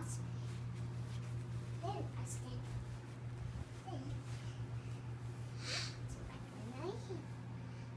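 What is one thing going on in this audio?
Bedding rustles as a small child shifts and kneels on a bed.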